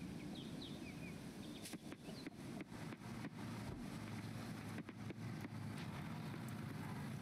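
Light footsteps patter on a dirt path.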